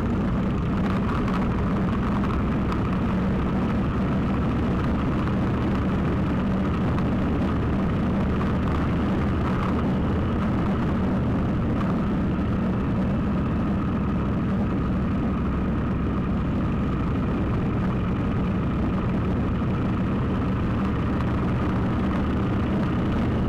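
Wind rumbles loudly against the microphone outdoors.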